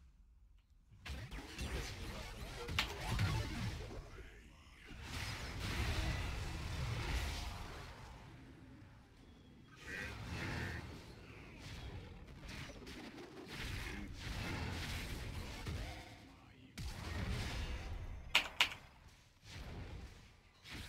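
Video game battle sound effects of spells and strikes clash and crackle.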